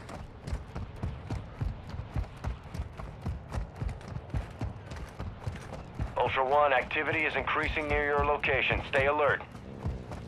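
Quick footsteps thud on dirt as someone runs.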